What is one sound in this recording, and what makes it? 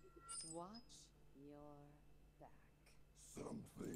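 A coin spins and rings with a bright chime.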